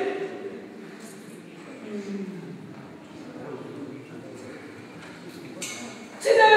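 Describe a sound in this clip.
A young man talks in a lower voice in an echoing hall.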